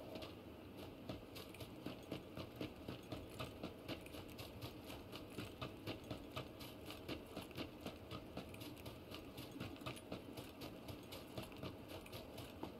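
Footsteps run quickly over grass and dirt.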